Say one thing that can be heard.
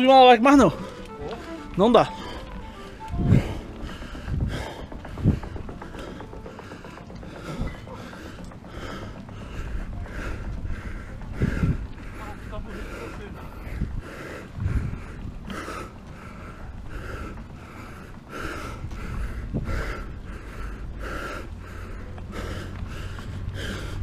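Wind rushes past while riding a bicycle.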